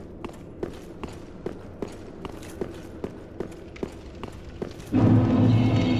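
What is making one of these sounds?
Armoured footsteps clank steadily up stone stairs.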